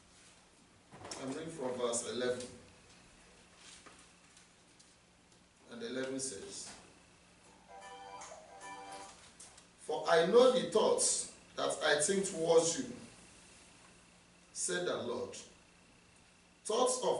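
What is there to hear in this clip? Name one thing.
A man speaks slowly and earnestly into a microphone, with pauses.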